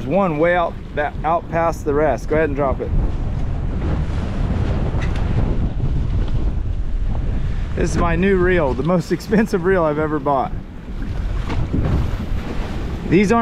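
Wind rushes and water churns against a moving boat.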